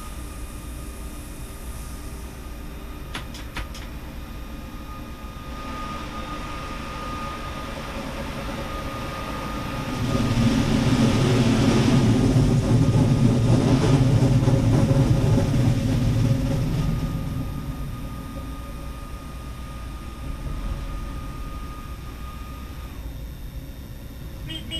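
A train rumbles steadily along the rails, swelling louder for a while before easing off.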